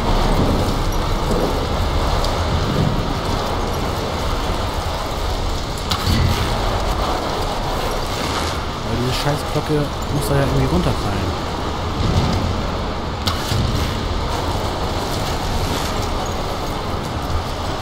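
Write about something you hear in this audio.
Wind roars steadily.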